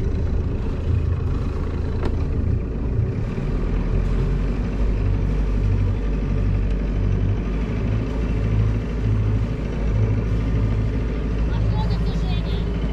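Strong wind buffets loudly and steadily outdoors.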